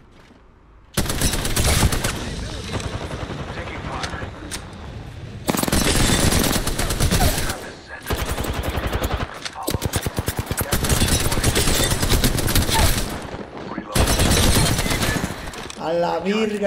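Rapid gunfire bursts loudly and in long volleys.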